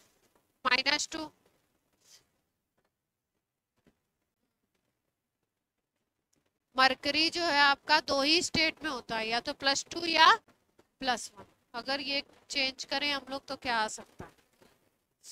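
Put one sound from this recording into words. A woman speaks clearly through a close microphone, explaining in short bursts with pauses.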